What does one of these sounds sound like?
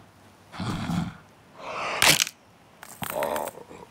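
A cartoon crocodile spits out a mouthful of eggs with a wet sputter.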